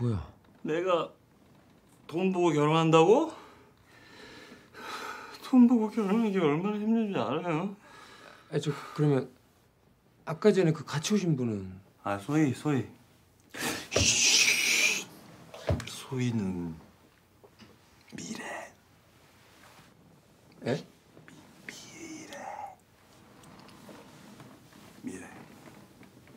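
A young man speaks calmly and quietly close by.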